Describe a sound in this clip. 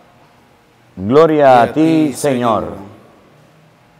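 A man chants a short sung phrase through a microphone in a reverberant hall.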